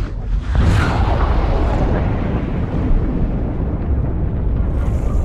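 Water bursts and churns with a deep rumble.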